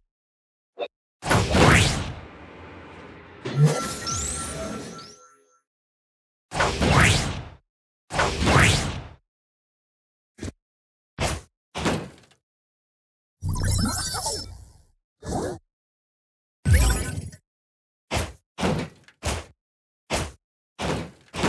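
Heavy punches thud in quick bursts.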